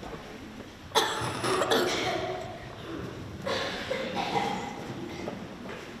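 A child speaks through a microphone in an echoing hall.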